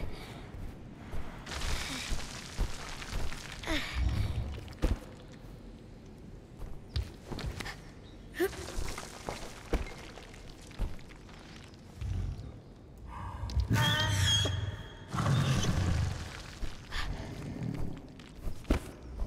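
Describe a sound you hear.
Feathers rustle as a child climbs through them.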